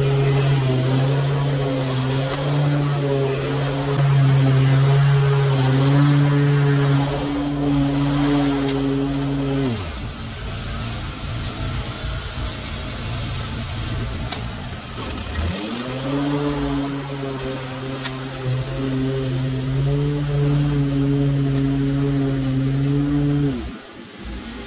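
A lawn mower engine drones loudly and steadily, winds down, then starts up again.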